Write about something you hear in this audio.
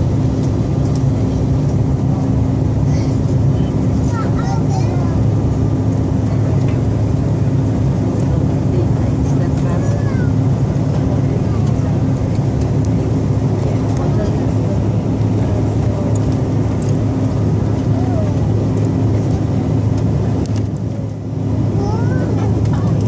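A jet airliner's engines roar with a steady low drone inside the cabin.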